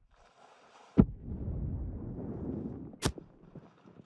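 A loud explosion rumbles nearby.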